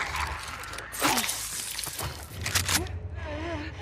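A blade stabs into flesh with a wet thud.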